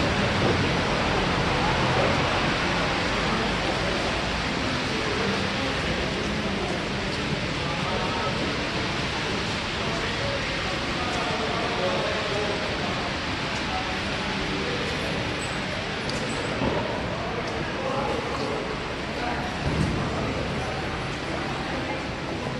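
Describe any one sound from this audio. Footsteps of many people shuffle and tap on a hard floor.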